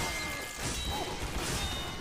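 A heavy machine gun fires in a rapid burst.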